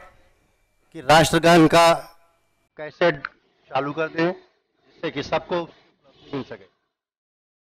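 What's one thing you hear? A man speaks forcefully through a loudspeaker in open air.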